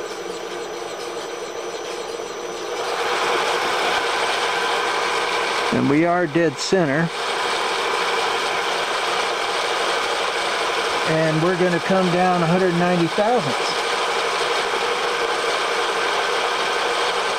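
A milling machine motor whirs steadily, growing louder after a few seconds.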